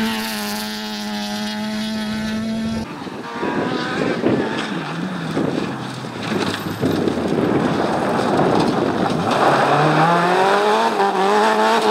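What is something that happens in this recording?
A rally car engine roars at high revs and shifts gears.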